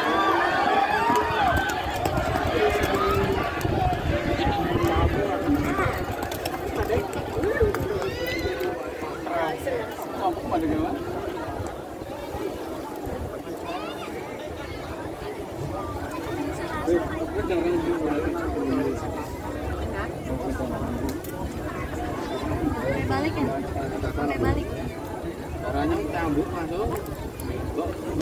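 A crowd of men and women chatters and shouts outdoors close by.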